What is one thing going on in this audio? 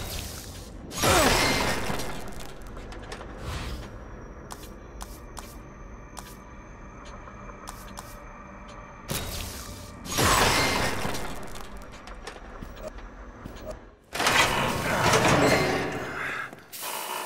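A loud whooshing upgrade effect surges and slowly fades.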